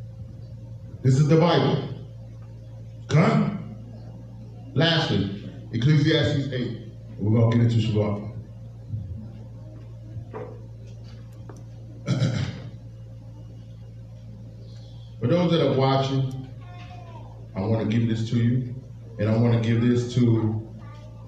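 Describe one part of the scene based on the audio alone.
A man speaks into a microphone in short, loud bursts, heard through a loudspeaker.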